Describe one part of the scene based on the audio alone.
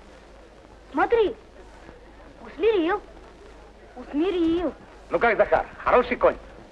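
Young boys shout excitedly, close by.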